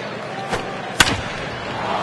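A bat cracks against a baseball.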